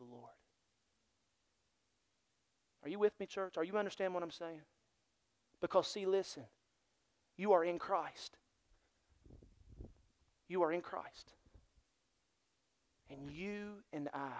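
A man speaks expressively in short phrases through a microphone, with pauses between them.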